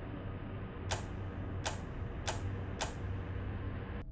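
Switches click one after another.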